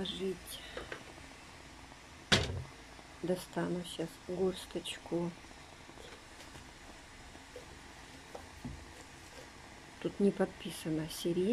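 Water bubbles at a boil in a pot.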